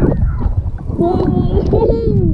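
A young boy laughs close up.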